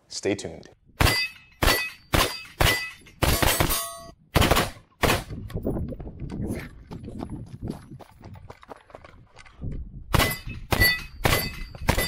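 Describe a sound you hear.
A rifle fires rapid sharp shots outdoors.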